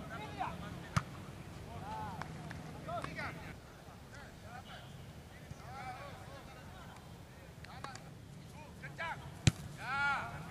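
A football is kicked with a sharp thud.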